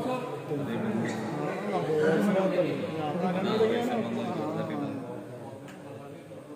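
A crowd of spectators chatters in an echoing hall.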